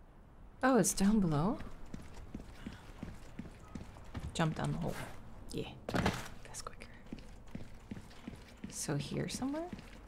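Footsteps thud on a stone floor.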